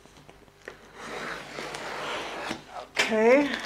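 A knife scrapes along tape on a cardboard box.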